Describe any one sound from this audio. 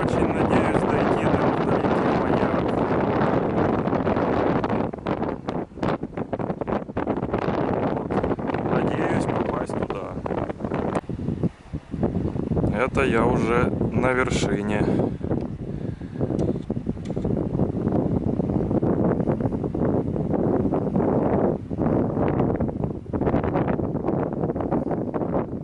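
Strong wind buffets the microphone outdoors.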